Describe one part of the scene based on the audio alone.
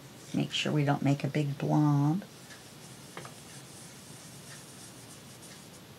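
A foam blending tool rubs softly across paper.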